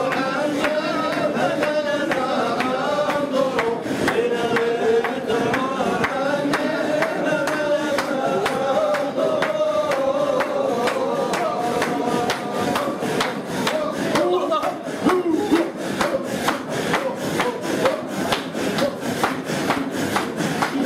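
A group of men chant together in unison.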